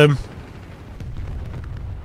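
A shell explodes with a heavy boom.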